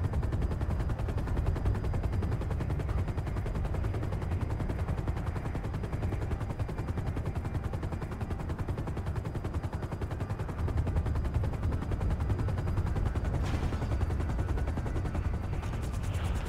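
An aircraft engine drones loudly and steadily.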